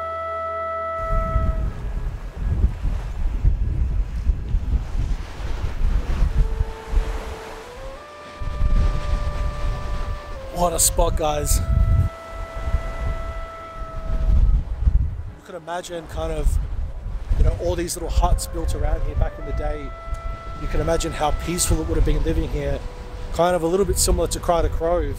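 Wind buffets the microphone outdoors.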